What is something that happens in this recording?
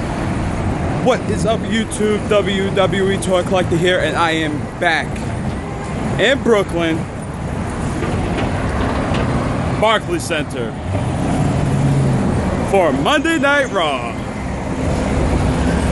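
A young man talks with animation close by, outdoors.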